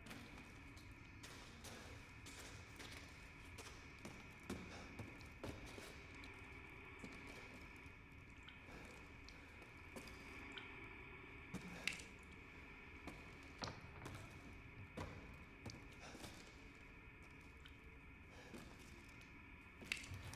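Footsteps thud and creak on wooden boards.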